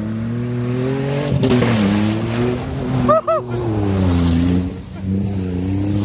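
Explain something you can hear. Mud and water splash and spray from a truck's tyres.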